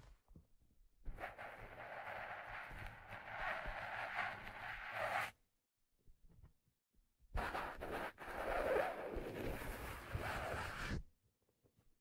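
Hands rub and brush a stiff felt hat close to a microphone.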